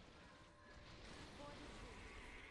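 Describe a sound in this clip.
A magical ice spell bursts with a crackling whoosh.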